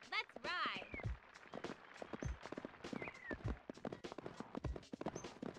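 A horse's hooves thud as it gallops over grass.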